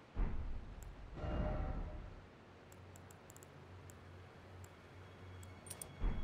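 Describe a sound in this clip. Soft interface clicks tick as a menu cursor moves between items.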